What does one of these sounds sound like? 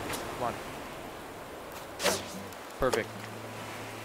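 A fishing float plops into the water.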